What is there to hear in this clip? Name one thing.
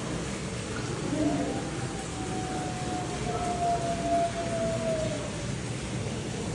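A wolf howls in a long, steady, high note that slowly falls away.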